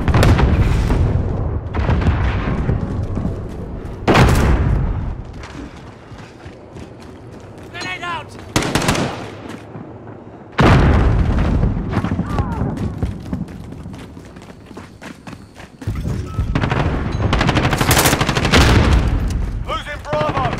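Footsteps thud quickly up concrete stairs.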